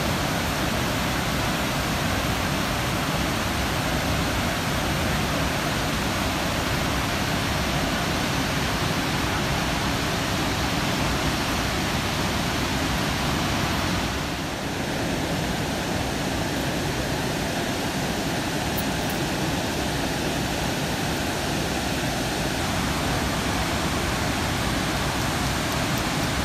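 A large waterfall roars steadily with a heavy rush of water.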